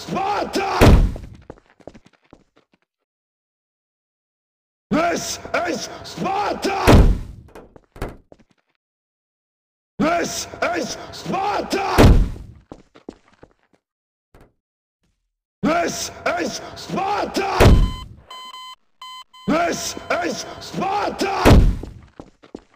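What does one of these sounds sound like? A body lands with a heavy thud.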